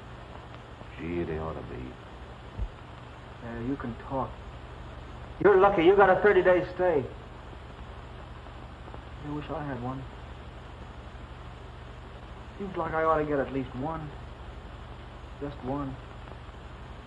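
A young man speaks softly and wistfully.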